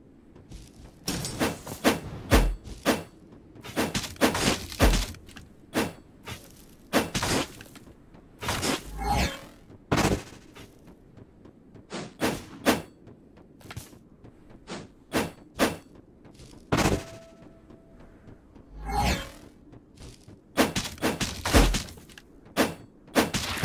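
Blades swish and strike in quick bursts of sharp hits.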